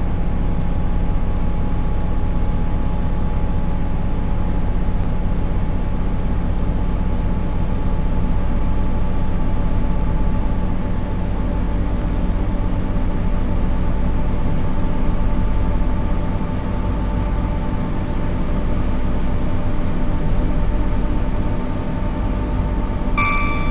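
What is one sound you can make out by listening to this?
Train wheels rumble and clatter over the rails.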